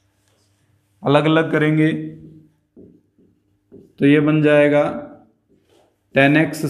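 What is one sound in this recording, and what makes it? A man speaks clearly and calmly close to a microphone.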